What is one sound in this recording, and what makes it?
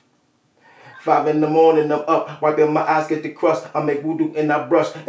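A man sings loudly and steadily right up against a microphone.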